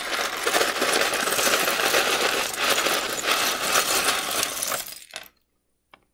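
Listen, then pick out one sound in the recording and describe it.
Plastic toy bricks clatter and rattle as they pour out of a container.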